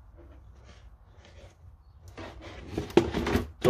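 A plastic helmet knocks and rattles as hands turn it over.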